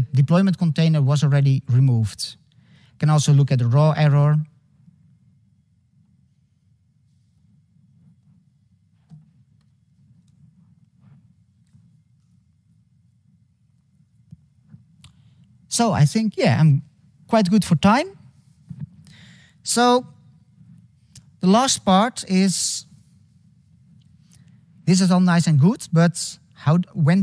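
A young man speaks calmly through a microphone, with pauses.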